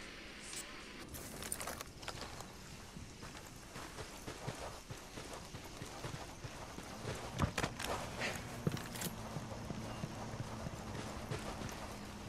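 Footsteps rustle through brush and grass.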